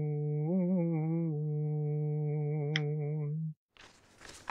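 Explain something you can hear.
A young man recites in a long, drawn-out chant into a microphone.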